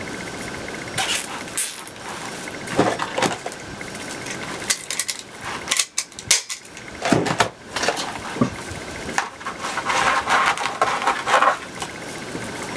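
Stiff mesh ribbon rustles and crinkles as it is handled.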